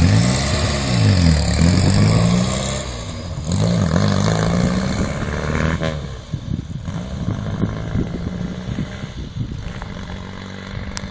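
A small car engine revs and shifts gears as it drives away, fading into the distance.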